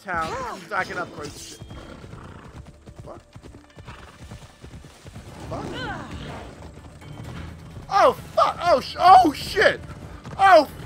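A horse gallops, its hooves thudding quickly on the ground.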